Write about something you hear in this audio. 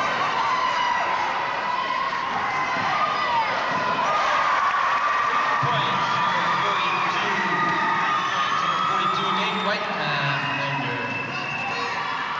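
A sparse crowd murmurs in the background.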